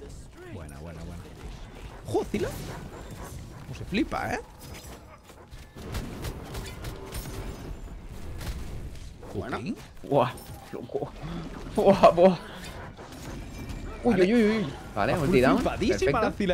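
Game sound effects of magic blasts and clashing weapons ring out.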